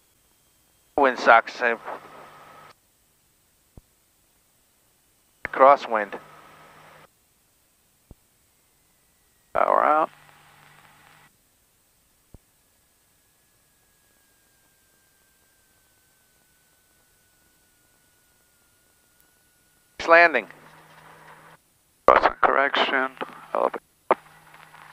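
A man speaks in short bursts over a headset radio.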